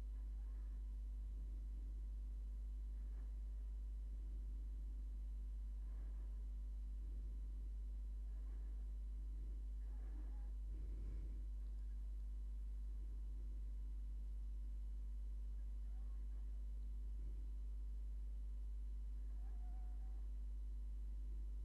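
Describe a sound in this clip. A rotary tool bit grinds faintly against glass in short bursts.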